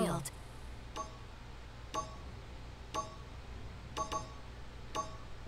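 A countdown timer beeps once a second.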